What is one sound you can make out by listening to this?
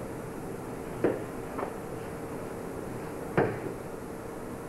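Bodies thump and scuffle on a padded mat.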